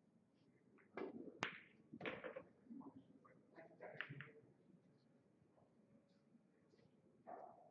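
Billiard balls click against each other on a table.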